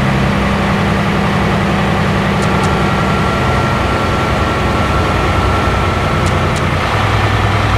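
A truck's diesel engine drones steadily while driving.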